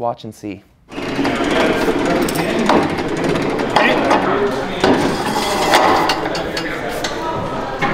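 A metal lift rattles and clanks as it is moved.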